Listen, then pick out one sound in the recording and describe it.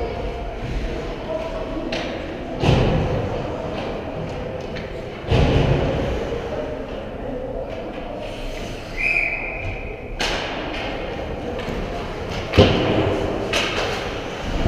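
Ice skates scrape and swish across ice in a large echoing rink.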